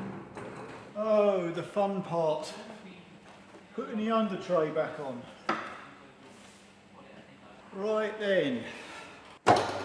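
A man speaks calmly and clearly close by.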